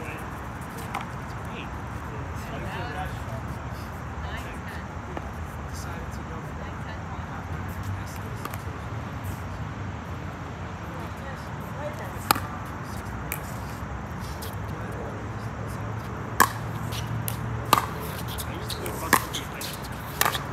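Paddles strike a ball with sharp pops outdoors.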